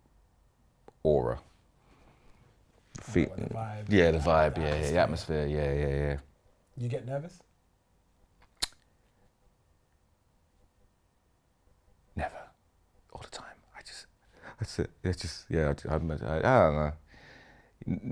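A second young man talks and laughs nearby.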